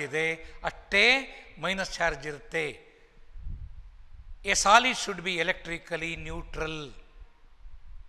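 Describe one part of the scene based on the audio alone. An older man speaks calmly and clearly into a close microphone, with pauses.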